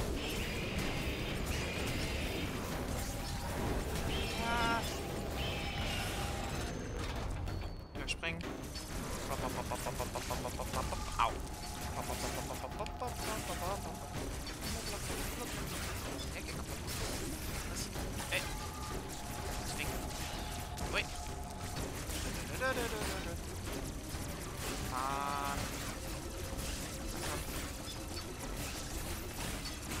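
Blaster shots fire rapidly.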